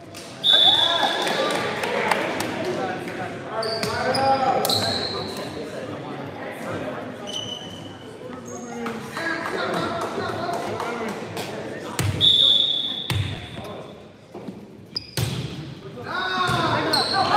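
Young men shout and call out to each other across a large echoing gym.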